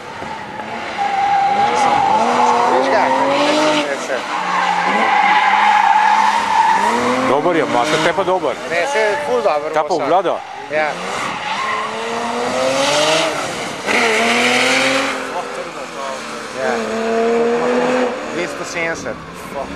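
A car engine revs hard, rising and falling in pitch as a car slides around a track.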